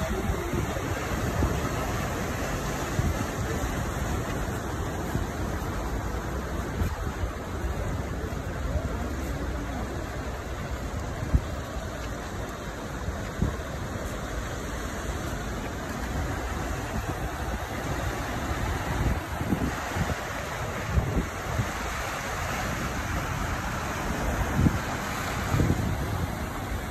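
Floodwater rushes and churns across a flooded street.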